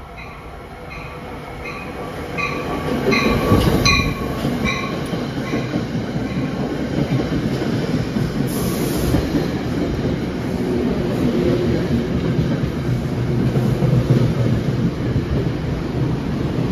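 A train approaches and rumbles loudly past, close by.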